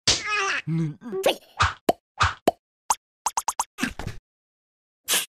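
Cartoon creatures babble in high, silly voices.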